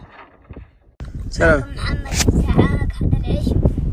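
A young boy talks with animation, outdoors in wind.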